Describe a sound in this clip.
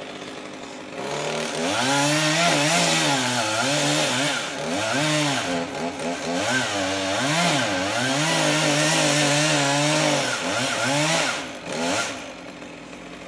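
A chainsaw revs and whines as it cuts through wood.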